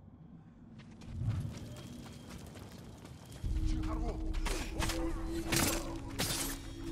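A blade swings and strikes with sharp hits.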